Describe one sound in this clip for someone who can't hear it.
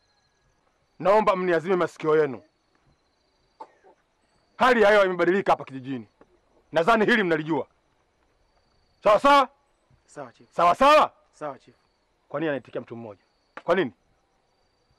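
A man speaks loudly and forcefully close by.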